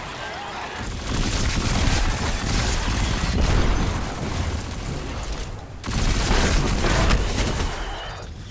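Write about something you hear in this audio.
Energy guns fire in rapid bursts with loud zapping blasts.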